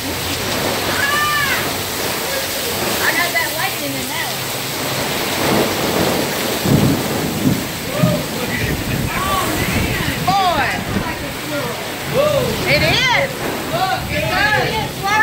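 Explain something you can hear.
Young women shriek and shout excitedly nearby.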